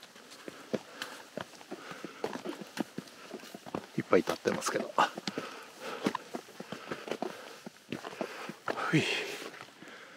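Footsteps crunch on a rocky trail.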